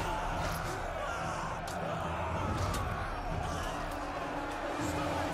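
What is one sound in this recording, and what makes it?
Swords and shields clash repeatedly.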